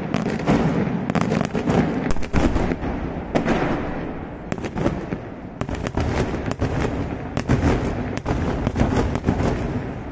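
Daytime fireworks explode in a rapid salvo of sharp bangs, echoing across open hills.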